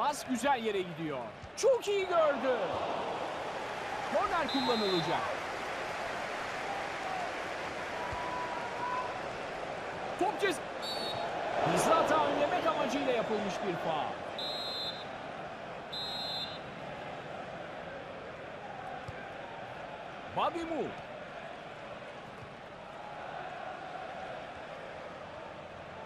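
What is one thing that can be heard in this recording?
A stadium crowd roars and cheers throughout.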